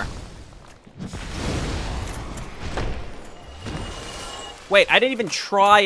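Flames burst and roar with a deep whoosh.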